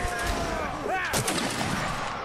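A musket fires with a loud bang.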